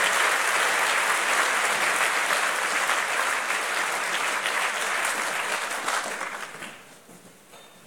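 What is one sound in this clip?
An audience applauds steadily in a large hall and then dies away.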